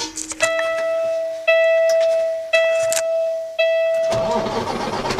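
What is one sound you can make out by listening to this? A dashboard warning chime beeps several times.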